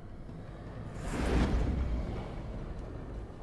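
Steam hisses as a metal pod opens.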